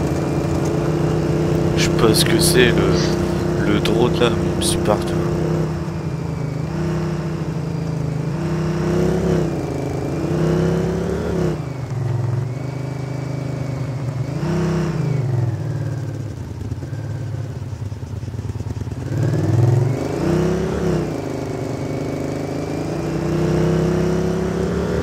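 A quad bike engine hums steadily and revs up and down as it drives.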